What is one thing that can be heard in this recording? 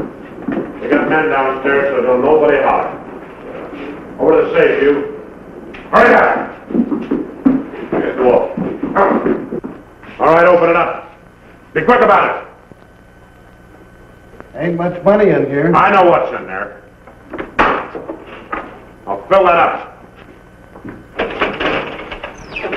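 A man speaks sternly and threateningly.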